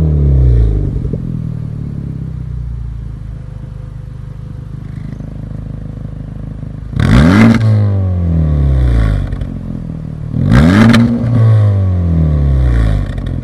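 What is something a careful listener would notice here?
A car engine idles with a deep, rumbling exhaust close by.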